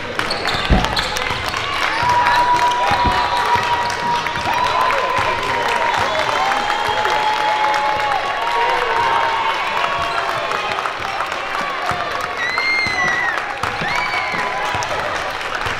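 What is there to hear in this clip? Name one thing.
A basketball bounces on a wooden court with loud thumps.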